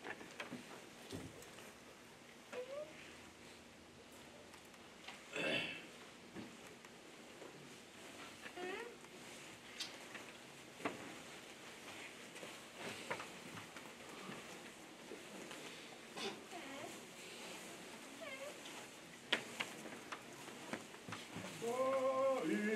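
A seated crowd murmurs and shifts quietly in a large room.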